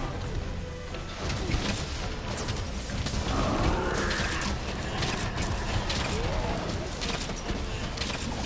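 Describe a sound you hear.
Weapons clash and slash against a large monster.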